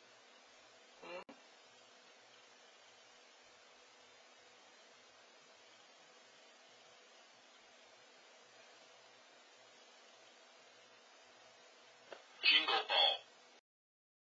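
A recorded voice speaks a short word from a pet's talking button.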